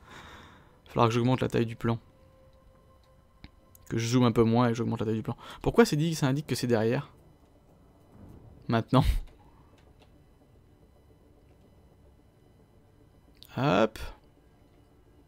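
A man speaks casually into a close microphone, in short bursts with pauses.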